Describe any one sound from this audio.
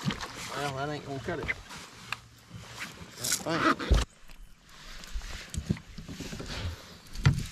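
A fishing reel clicks and whirs as a line is cast.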